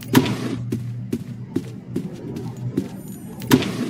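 Footsteps thud steadily across a floor.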